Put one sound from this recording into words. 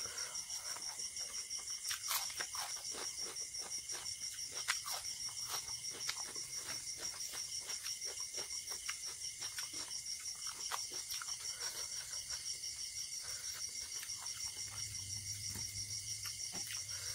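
Fingers squish and mix soft rice on a plate.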